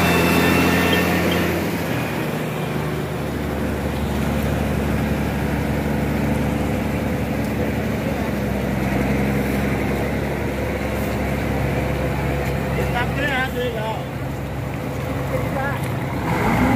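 A large bus engine idles with a steady low rumble.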